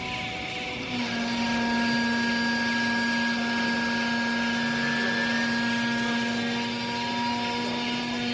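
A hydraulic baling press hums steadily and loudly.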